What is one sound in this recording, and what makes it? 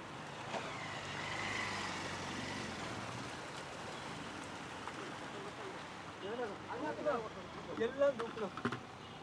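Water trickles steadily down a small stone channel.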